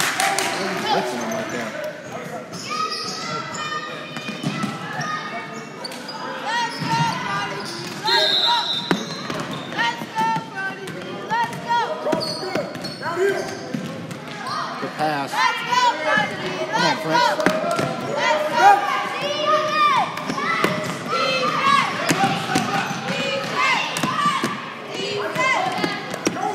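Children shout and call out to each other.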